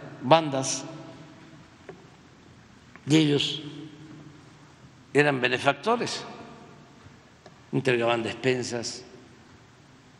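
An elderly man speaks calmly into a microphone in short bursts with pauses, echoing in a large hall.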